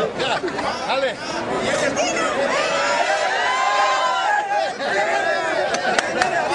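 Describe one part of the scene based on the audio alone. A crowd of men and women chant and cheer loudly together close by.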